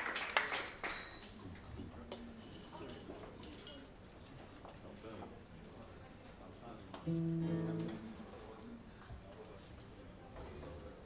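An electric guitar plays softly.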